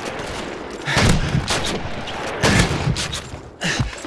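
A pump-action shotgun fires loud blasts.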